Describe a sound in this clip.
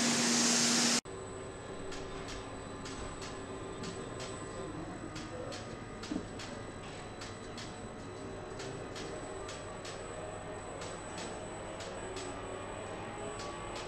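Industrial robot arms whir and hum steadily as they move.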